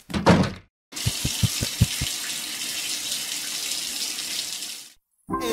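Water sprays steadily from a shower.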